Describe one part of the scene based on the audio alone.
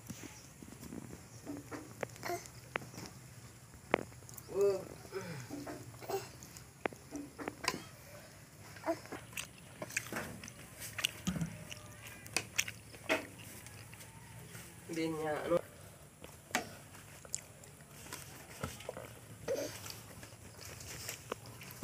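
A young child babbles and makes small vocal sounds nearby.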